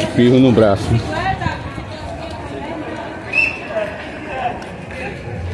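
A crowd chatters in the distance on a busy street.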